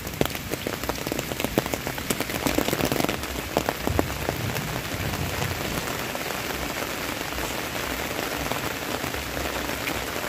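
Steady rain falls outdoors, hissing on the ground and leaves.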